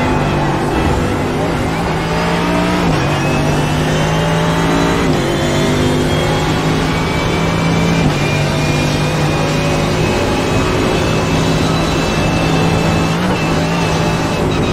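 A racing car engine roars at high revs, rising in pitch and dropping briefly with each gear shift.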